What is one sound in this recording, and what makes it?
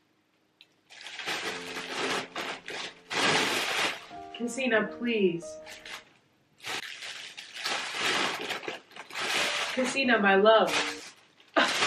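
A foil balloon crinkles and rustles in a person's hands.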